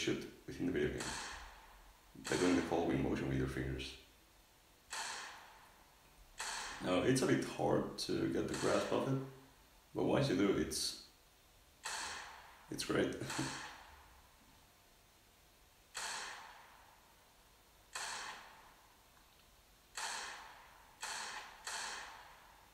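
A pistol fires single shots, each with a short echoing tail.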